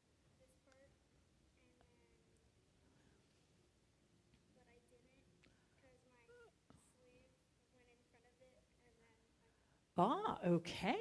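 A young girl answers softly, far from the microphone.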